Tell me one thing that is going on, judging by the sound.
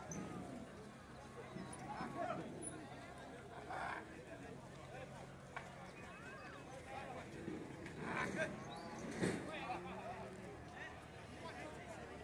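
Cattle moo loudly nearby.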